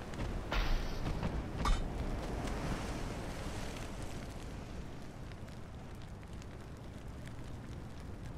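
Sea waves rumble steadily.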